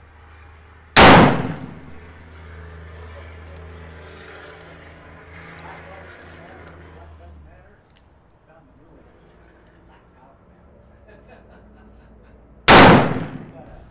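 A heavy black-powder revolver fires with a deep boom and a ringing echo.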